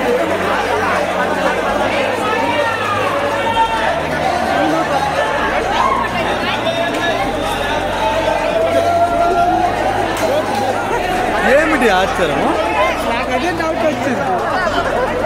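Film music plays loudly over loudspeakers.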